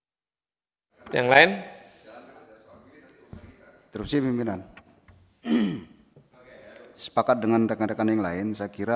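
A middle-aged man speaks firmly into a microphone in an echoing room.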